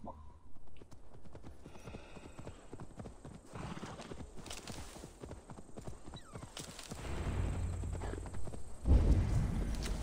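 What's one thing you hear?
A horse's hooves thud softly on grass at a walk.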